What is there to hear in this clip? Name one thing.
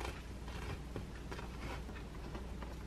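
A spoon scrapes sauce across a bagel.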